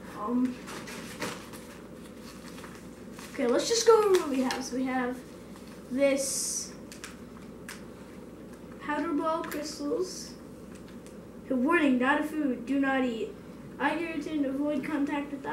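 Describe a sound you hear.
Paper packets crinkle and rustle.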